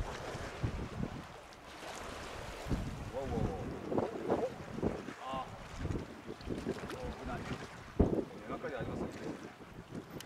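Water laps gently against the shore.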